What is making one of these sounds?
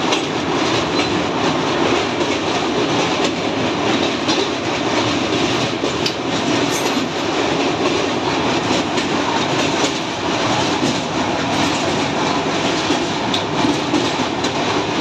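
Train wheels clatter rhythmically on the rails.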